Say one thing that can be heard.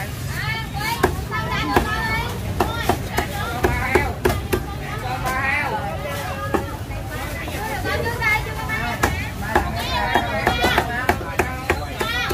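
A cleaver chops through roast duck on a chopping block.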